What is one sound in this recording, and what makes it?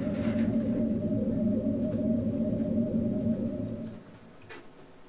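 A low electronic synthesizer drone hums steadily, then stops.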